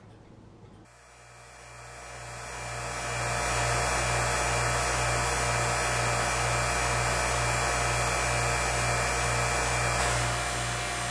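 A machine hums steadily with a low drone.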